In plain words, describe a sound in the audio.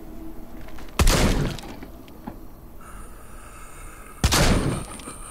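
A revolver fires loud gunshots that echo off rock.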